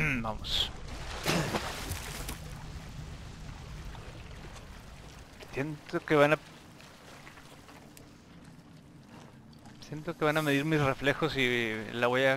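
Water sloshes as someone wades slowly through it.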